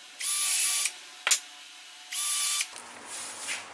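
A cordless drill whirs in short bursts.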